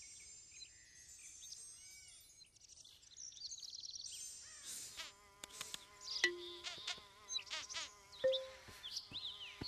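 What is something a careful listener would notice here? Playful video game music plays with chiming tones.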